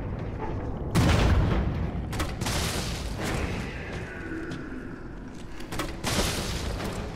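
A grenade launcher fires with a heavy thump.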